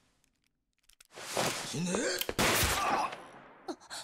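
A young woman shouts.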